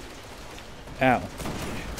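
A large creature lets out a short, loud shriek.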